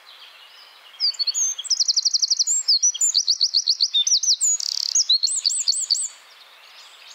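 A small bird sings a loud, rapid song of high trills and warbles close by.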